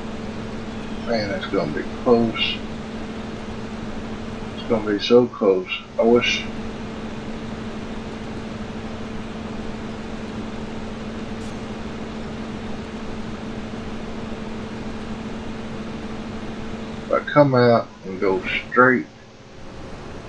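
A combine harvester engine hums steadily.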